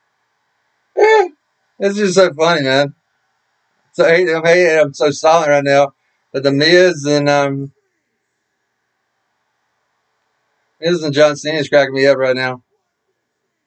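A man speaks close to the microphone in short bursts, pausing between phrases.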